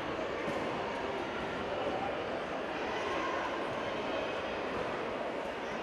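A crowd of people murmurs in a large echoing hall.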